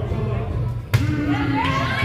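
A player serves a volleyball with a sharp smack.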